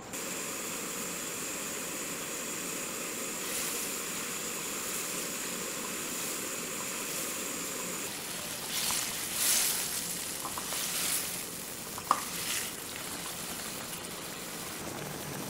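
Sauce bubbles and sizzles steadily in a pan.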